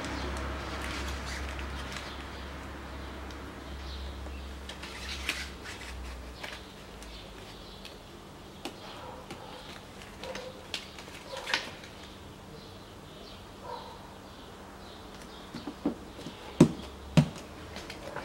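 Fingers tap and press on plastic lettering with soft clicks.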